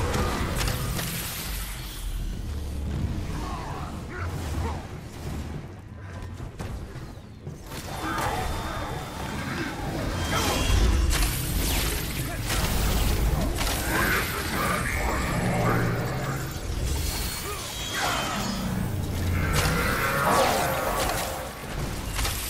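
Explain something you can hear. Blades slash and energy blasts crackle in a fast fight.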